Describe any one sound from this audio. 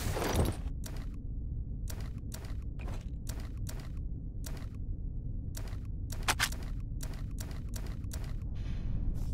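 Short soft clicks tap repeatedly.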